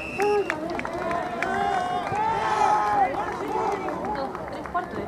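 Spectators cheer and shout from the sideline.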